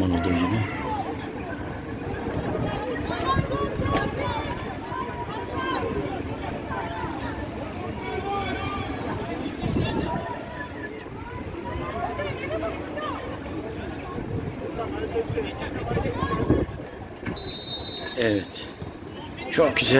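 Football players, young men, shout and call to each other across an open pitch outdoors.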